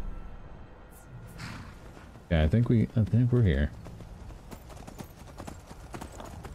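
Horse hooves clop on a rocky path.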